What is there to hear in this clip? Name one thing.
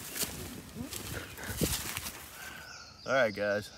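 Leafy clothing rustles as a man walks outdoors.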